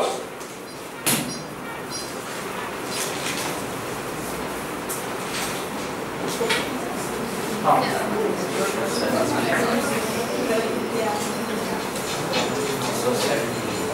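A man speaks calmly into a headset microphone, explaining.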